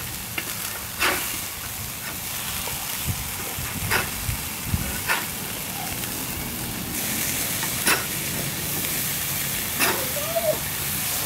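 A metal spatula scrapes and clinks against a grill grate.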